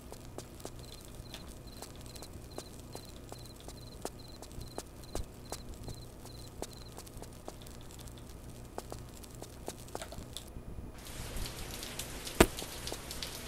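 Footsteps tap quickly and steadily on a hard stone floor.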